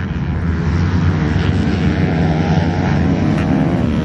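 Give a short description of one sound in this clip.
Several motorbikes roar past together.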